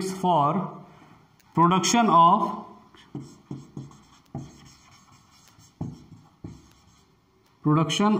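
A man speaks calmly and clearly, as if teaching, close by.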